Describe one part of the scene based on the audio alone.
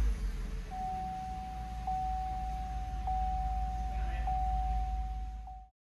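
A car's warning chime sounds as a steady high tone.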